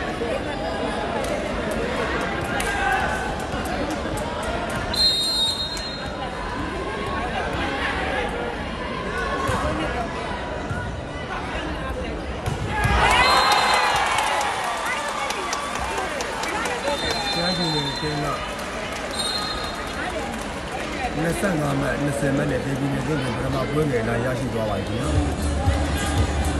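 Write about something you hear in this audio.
A large crowd chatters and cheers throughout an echoing indoor hall.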